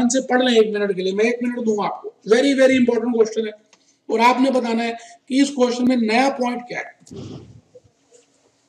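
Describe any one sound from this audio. A middle-aged man speaks calmly and clearly close to a microphone.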